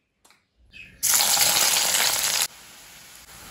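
Chopped onions drop into hot oil in a metal wok and sizzle.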